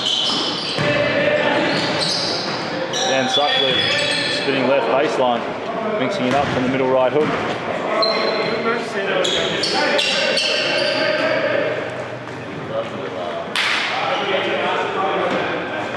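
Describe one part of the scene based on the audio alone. Young men shout and call out across an echoing gym.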